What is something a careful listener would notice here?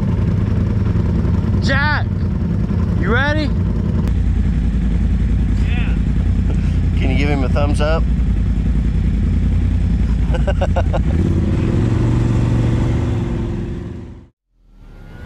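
An off-road vehicle engine rumbles and idles close by.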